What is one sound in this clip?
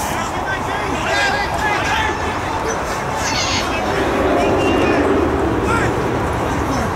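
Players shout to each other across an open pitch.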